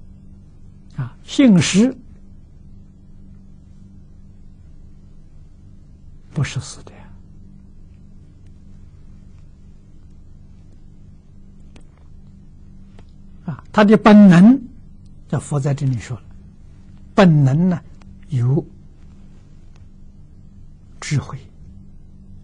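An elderly man speaks calmly and slowly, close to a microphone, with long pauses.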